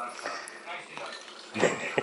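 A dog chews a crunchy treat.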